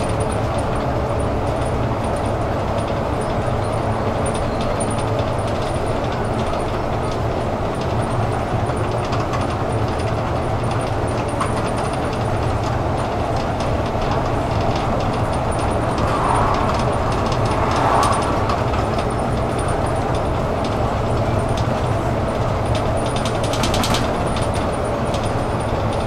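A bus engine hums and drones steadily from inside the cabin.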